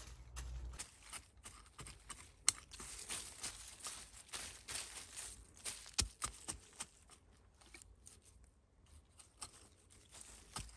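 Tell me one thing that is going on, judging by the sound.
A hand tool scrapes and digs into soil.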